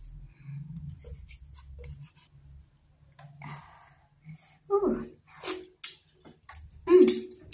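A young woman chews food with wet, smacking sounds close to a microphone.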